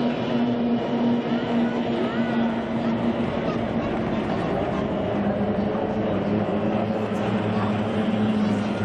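Two-stroke outboard engines on racing hydroplanes scream at full throttle.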